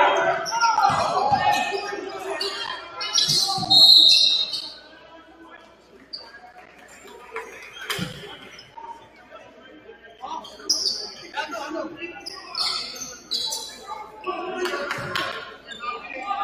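Spectators call out and cheer in a large echoing gym.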